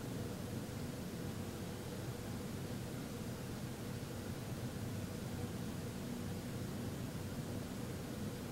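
A man hums a low, steady tone close by.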